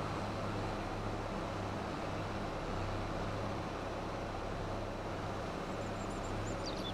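A forage harvester whirs and blows crop into a trailer.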